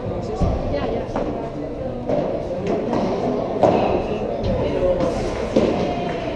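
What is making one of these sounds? Padel balls thud off rackets and walls in a large echoing hall.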